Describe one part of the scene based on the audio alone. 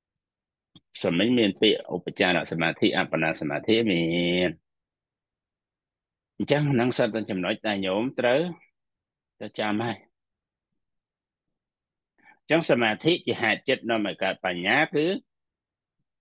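A middle-aged man speaks calmly, in short phrases with pauses, heard through an online call.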